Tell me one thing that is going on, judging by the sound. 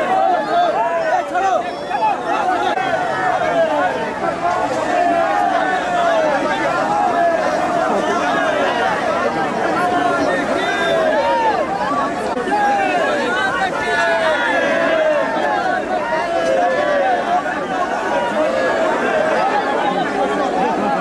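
A large crowd of men shouts and cheers loudly outdoors.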